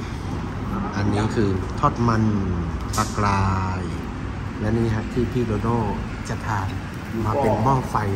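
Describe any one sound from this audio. A man talks nearby in a calm, lively voice.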